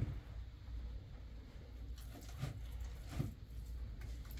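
A hand stirs wet plaster in a basin with soft slaps.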